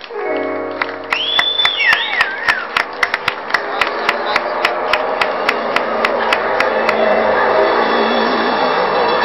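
A live band plays music through loudspeakers outdoors.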